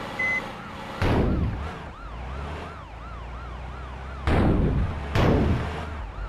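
Metal crashes and bangs loudly in a collision.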